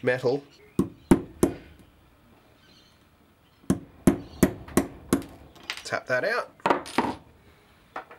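Metal taps sharply against metal in quick knocks.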